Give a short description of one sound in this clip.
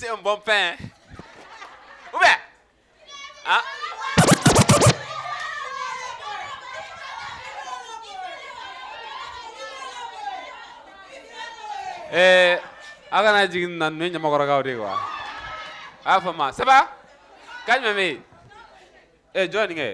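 A crowd of people cheers and chatters.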